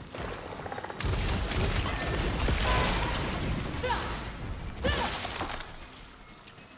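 A laser weapon fires with a loud buzzing blast.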